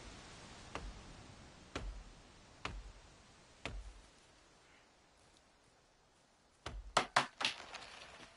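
An axe chops into wood with sharp, repeated knocks.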